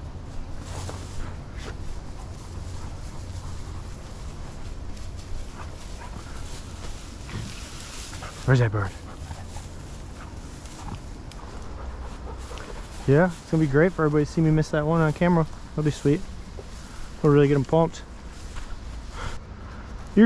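Footsteps swish through tall dry grass.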